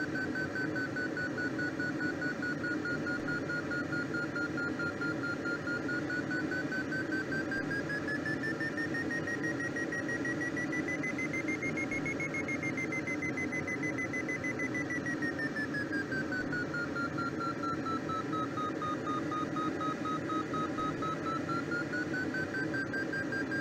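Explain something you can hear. A glider's variometer beeps a steady tone that slowly rises and falls in pitch.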